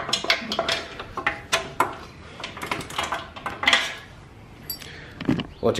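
Small metal parts clink and tap on a hard floor.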